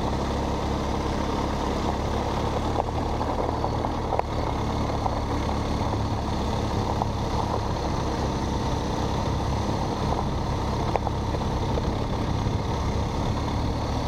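Wind rumbles against the microphone outdoors.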